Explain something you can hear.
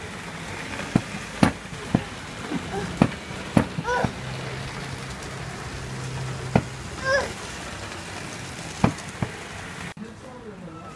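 A model train hums along its track.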